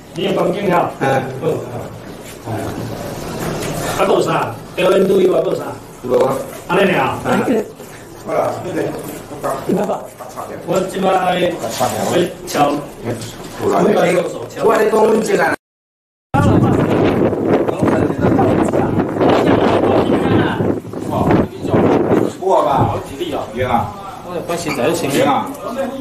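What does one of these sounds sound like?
Several men talk and shout close by.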